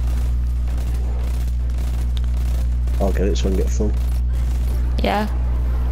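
A rapid-fire gun shoots repeatedly.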